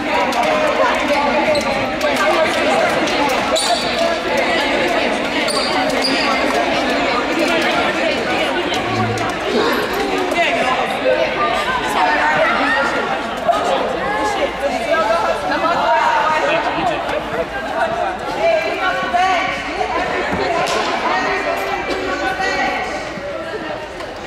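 Many young girls chatter and call out at once in a large echoing gym.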